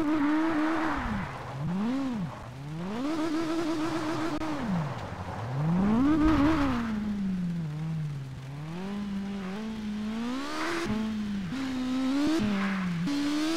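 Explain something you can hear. A car engine revs up and down hard.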